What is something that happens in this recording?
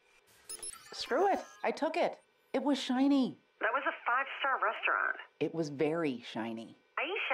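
A young woman talks animatedly on a phone, close by.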